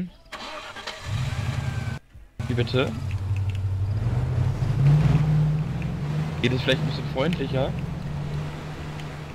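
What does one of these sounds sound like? A car engine starts and runs with a low rumble, revving as the car drives off.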